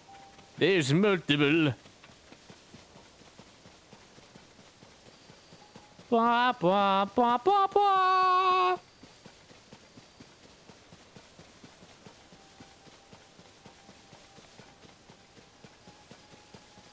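Footsteps run and rustle through tall grass.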